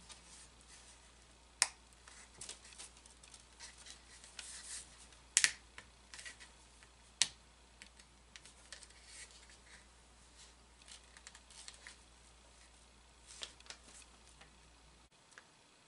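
Fingers handle small parts with light clicks and taps.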